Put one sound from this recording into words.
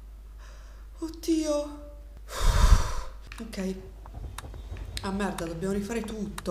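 A young woman speaks shakily close to a microphone.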